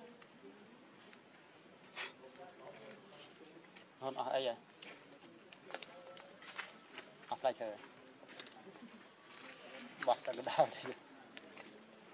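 A monkey chews and tears at food close by.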